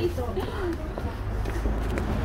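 Footsteps tread on paving stones outdoors.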